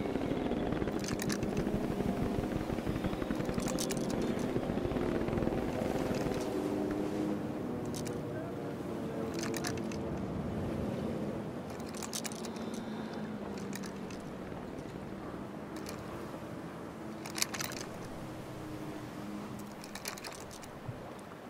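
A gun's metal parts click and clack as it is handled.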